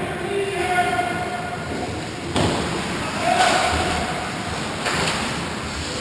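Skate blades scrape and carve across the ice in a large echoing rink.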